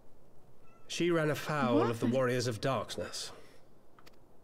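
A young man speaks in a low, serious voice, close by.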